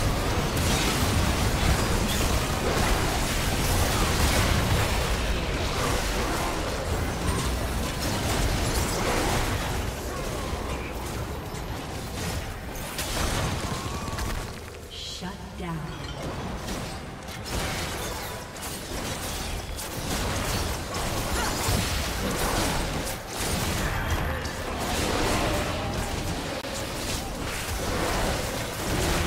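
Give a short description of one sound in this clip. Spell blasts and attacks crackle and boom in a video game battle.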